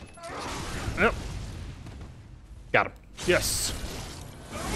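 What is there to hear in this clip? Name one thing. A heavy blade swings and slashes into flesh.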